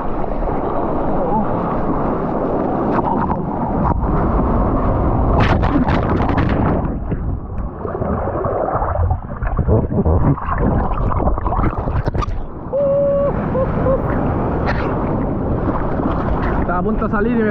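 Waves rush and splash loudly close by.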